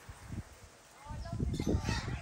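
Wind rushes across the microphone outdoors.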